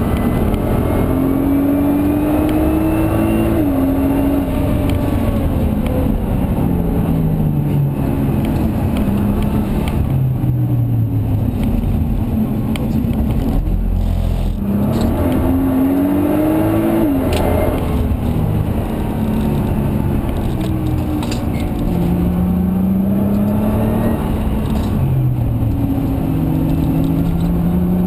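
Tyres rumble on the track surface.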